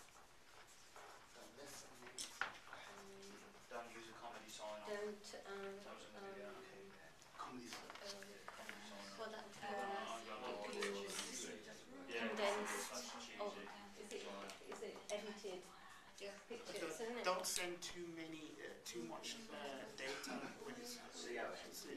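A woman talks calmly nearby in a room.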